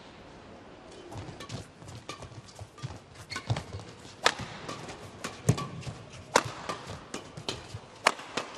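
Shoes squeak and thud on a court.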